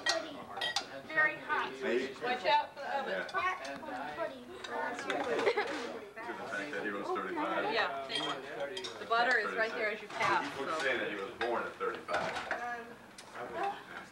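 Several men and women talk at once, close by and in the distance.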